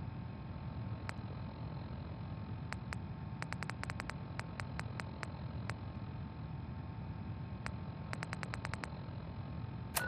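Short electronic clicks tick as a menu is scrolled.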